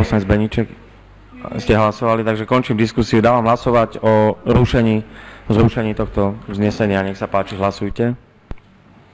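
A man speaks formally over a microphone in a large room.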